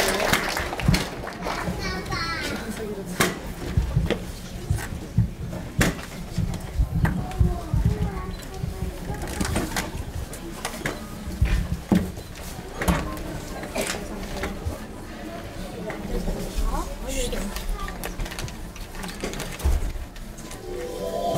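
A man answers calmly into a microphone, heard through loudspeakers in a large echoing hall.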